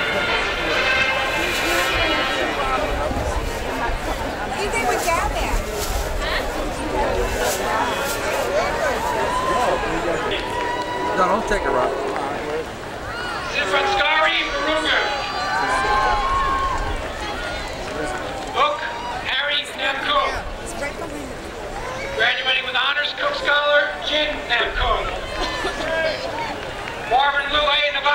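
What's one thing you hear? A large outdoor crowd of men and women chatters and calls out nearby.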